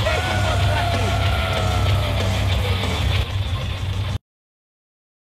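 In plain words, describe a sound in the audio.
Loud music plays at a concert.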